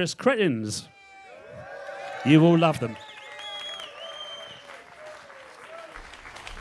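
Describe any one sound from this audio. A crowd cheers and whistles.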